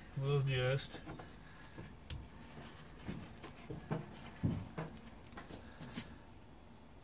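Small objects knock and rustle as hands work.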